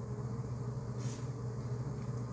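A young man slurps noodles close by.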